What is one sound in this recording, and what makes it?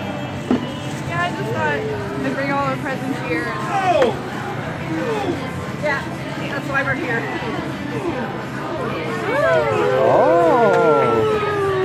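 Young children chatter and squeal excitedly nearby.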